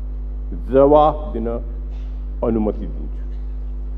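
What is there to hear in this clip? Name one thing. An elderly man speaks briefly and calmly into a microphone.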